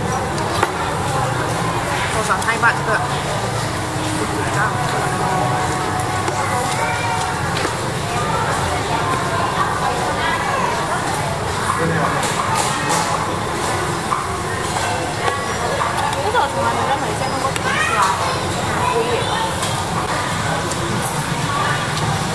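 Metal utensils clink against bowls and plates.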